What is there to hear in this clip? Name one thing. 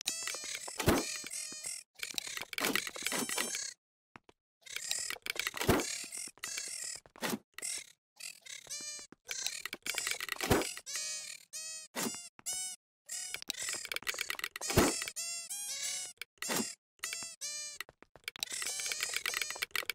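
Sheep bleat over and over.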